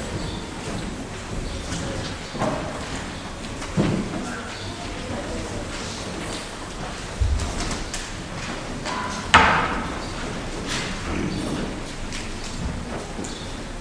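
Footsteps shuffle across a floor.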